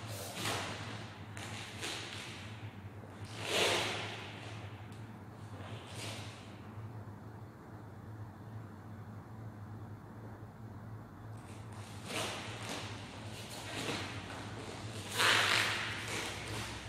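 A martial artist's uniform snaps and swishes with quick strikes and kicks.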